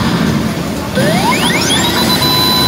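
A gaming machine's electronic sound effects sweep rapidly upward.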